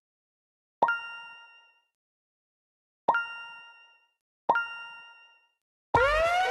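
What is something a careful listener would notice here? A bright game chime rings out three times, each ringing briefly before fading.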